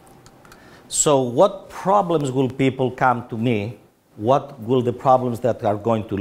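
A middle-aged man speaks calmly and clearly into a microphone, lecturing.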